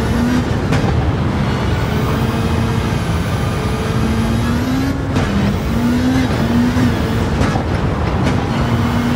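Tyres rumble and crunch over loose gravel.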